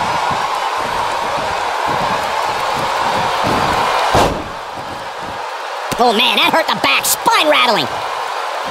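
A crowd cheers and murmurs loudly in a large arena.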